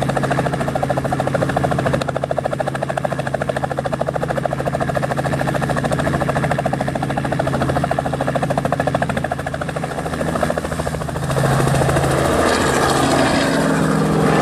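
A helicopter's rotor blades thump rapidly and steadily close by.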